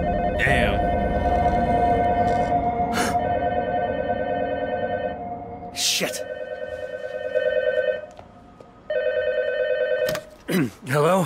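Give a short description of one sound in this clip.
A telephone rings loudly.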